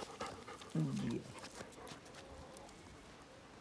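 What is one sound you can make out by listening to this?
Paws scuffle on gravel.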